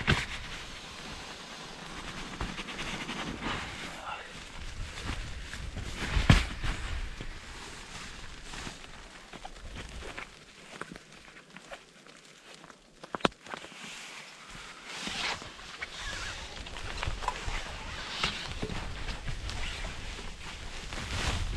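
Nylon fabric rustles and crinkles close by.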